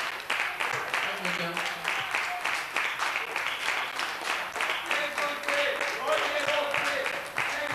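A live rock band plays loudly in a large hall.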